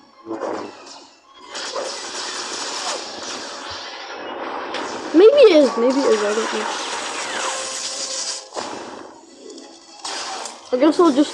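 Laser blasts and electronic battle effects crackle and whoosh in quick bursts.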